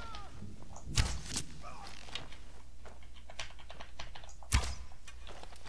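A bow releases an arrow with a sharp thwack.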